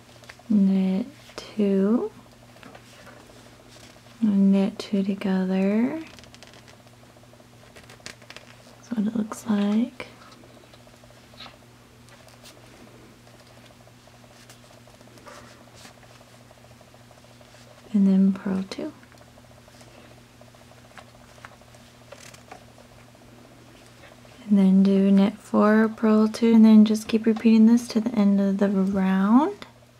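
Bamboo knitting needles tap softly against each other while knitting.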